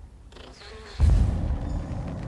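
A portal opens with a deep rumbling swell.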